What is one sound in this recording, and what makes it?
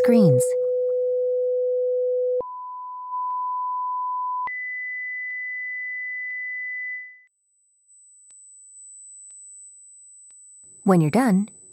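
A steady electronic test tone beeps from a phone, stepping higher in pitch every few seconds.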